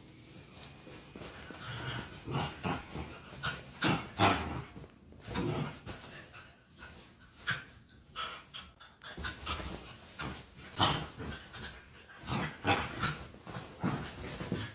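Dogs scuffle and thump on a soft bed.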